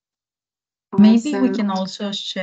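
A second woman speaks with animation over an online call.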